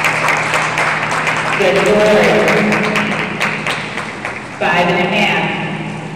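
Water splashes steadily as a swimmer strokes through a pool in a large echoing hall.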